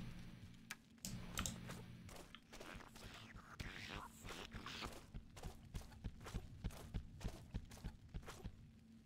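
Footsteps tap steadily on hard ground.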